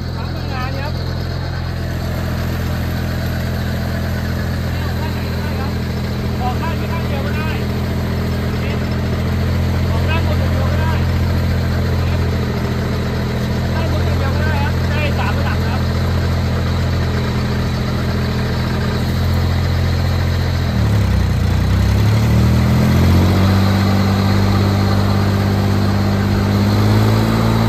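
An engine runs with a steady low drone.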